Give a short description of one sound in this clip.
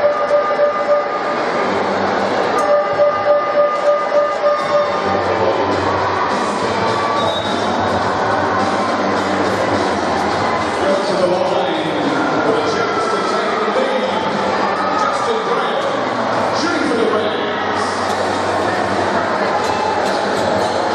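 A large crowd chatters and cheers in an echoing hall.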